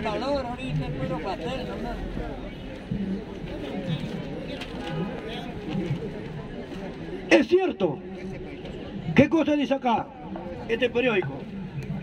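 An older man speaks loudly into a microphone through a loudspeaker, outdoors.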